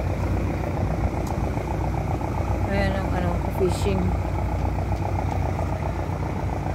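A boat's diesel engine chugs steadily nearby.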